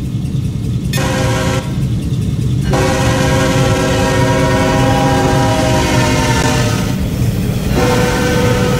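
A train horn blares.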